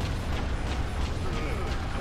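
A laser beam fires with a buzzing hum.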